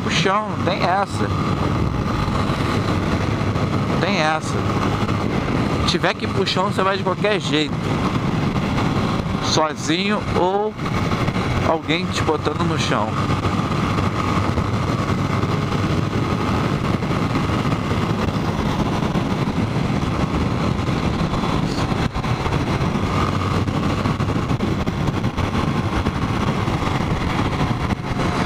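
A motorcycle engine drones steadily at speed.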